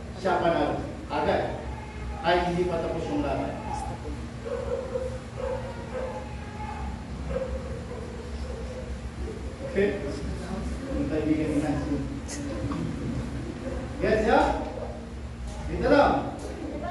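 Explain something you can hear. A man speaks loudly to a group in a room with some echo.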